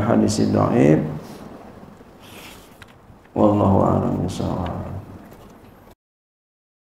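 A man speaks into a microphone in a calm, preaching voice.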